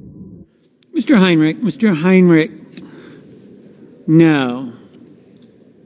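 A man speaks loudly and clearly through a microphone in a large echoing hall.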